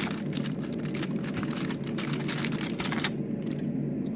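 Foil wrappers crinkle and rustle close by.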